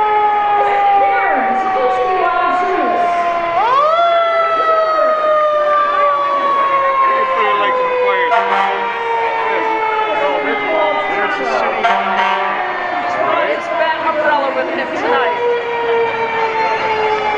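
A fire engine siren wails loudly nearby, slowly falling and then rising again.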